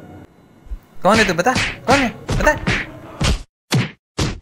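A young man laughs in short bursts, close by.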